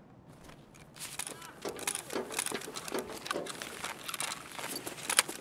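Footsteps and the rattle of a carried rifle move across a hard floor.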